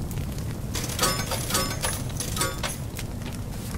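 Coins chime in quick bright jingles.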